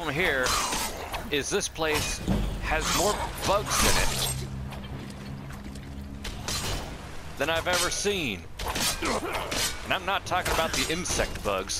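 Blades clash and strike flesh with heavy thuds.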